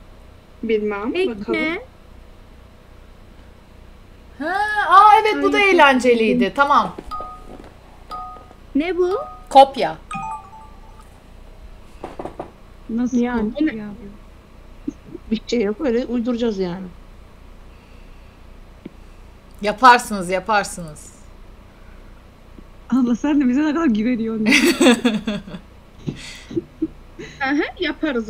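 A young woman talks with animation close to a microphone, pausing often.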